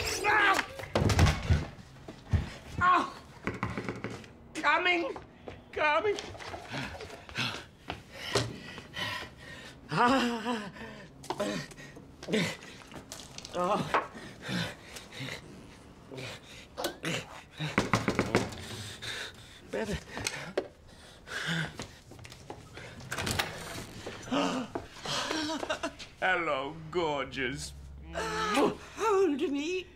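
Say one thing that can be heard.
A middle-aged man sings and exclaims with excitement nearby.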